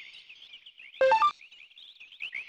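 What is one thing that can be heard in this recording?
A short electronic chime sounds.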